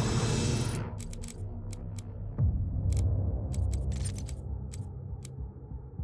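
Short soft clicks tick as menu items are selected.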